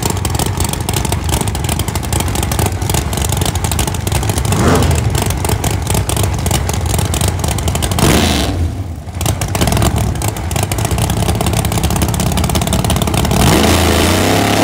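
A drag racing engine idles loudly with a harsh, crackling rumble.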